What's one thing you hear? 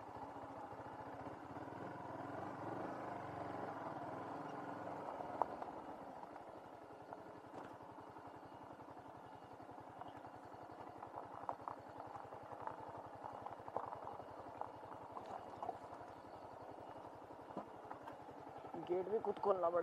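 A motorcycle engine hums steadily as the bike rolls down a bumpy path.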